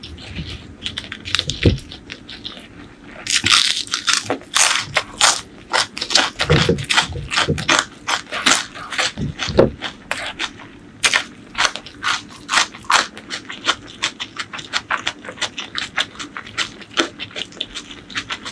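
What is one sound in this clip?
A woman chews crunchy vegetables loudly and wetly close to a microphone.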